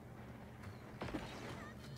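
A gun fires with a sharp burst.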